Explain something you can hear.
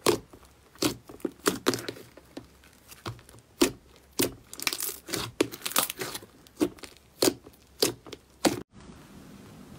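Hands squish and pat soft foamy slime, which pops and crackles.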